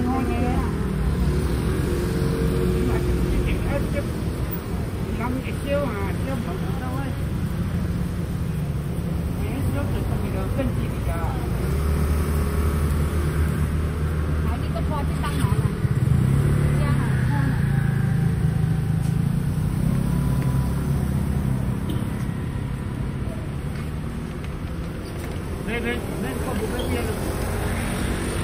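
A knife scrapes and slices the skin off a pineapple.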